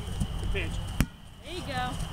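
A foot kicks a rubber ball with a sharp thump.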